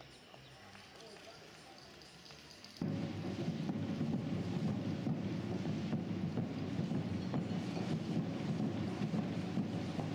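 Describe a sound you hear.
A runner's footsteps patter on asphalt.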